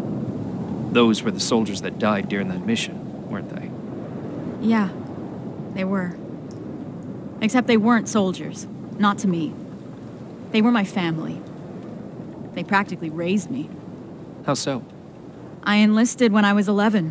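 A young woman speaks quietly and sadly, close by.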